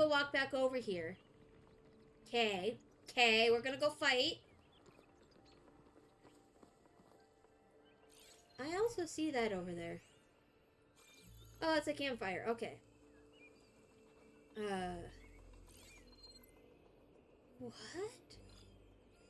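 A young woman talks with animation into a close microphone, in short bursts.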